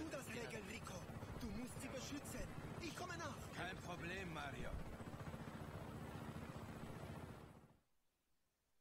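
A helicopter engine idles with a steady throbbing hum.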